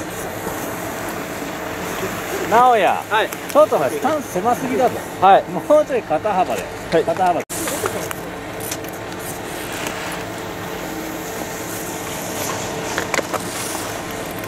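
Skis scrape and hiss over hard snow.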